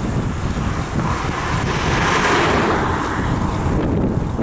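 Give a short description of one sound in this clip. A car passes close by on a paved road.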